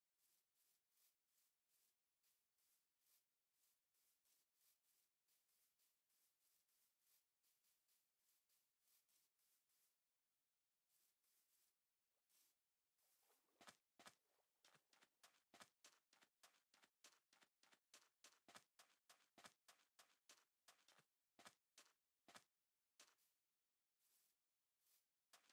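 Footsteps crunch on grass and then on sand in a steady walking rhythm.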